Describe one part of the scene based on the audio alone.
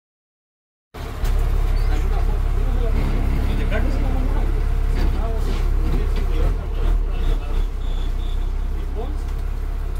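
Loose panels rattle inside a bus.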